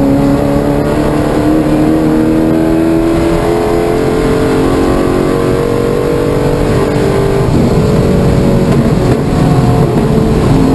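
Wind rushes past the car.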